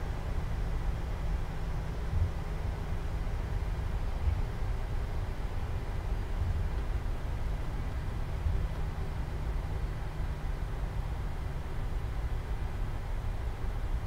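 Jet engines hum steadily with a low rumble as an airliner taxis.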